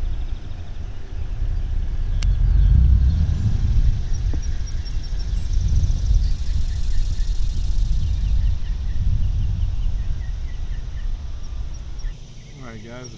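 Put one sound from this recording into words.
Wind rumbles across an open outdoor space.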